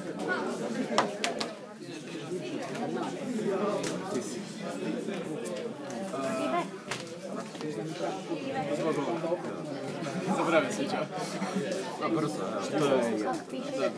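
Playing cards tap and slide on a wooden table.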